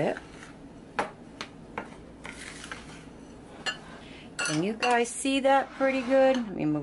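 A spoon scrapes and taps against a glass bowl.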